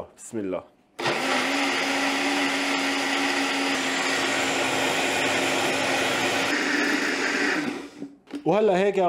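A blender whirs loudly and steadily.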